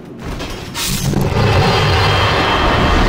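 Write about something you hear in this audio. A burst of magic whooshes loudly.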